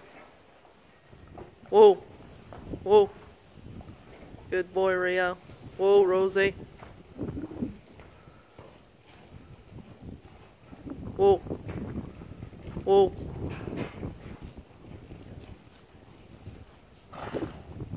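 Horse hooves thud softly on sand.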